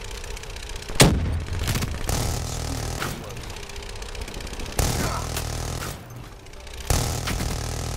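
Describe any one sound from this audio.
Loud explosions boom and echo.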